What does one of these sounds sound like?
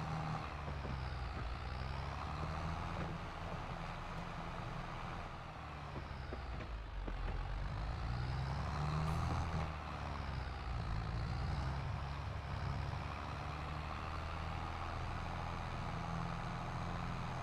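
A tractor engine rumbles steadily, rising and falling in pitch as it drives.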